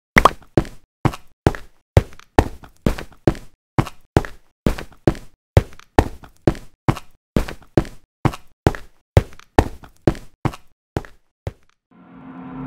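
A pickaxe strikes stone in quick, steady blows.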